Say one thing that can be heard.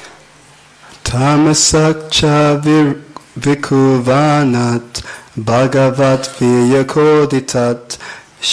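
A young man speaks calmly into a microphone, heard through a loudspeaker in an echoing hall.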